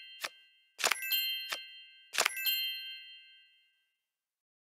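A bright chime rings out and fades.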